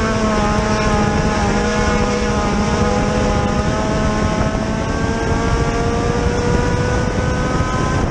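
A race car engine roars loudly up close, its pitch rising and falling.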